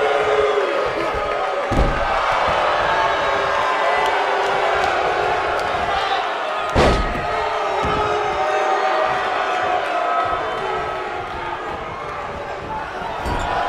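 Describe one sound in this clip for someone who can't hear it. A large crowd cheers and roars steadily throughout.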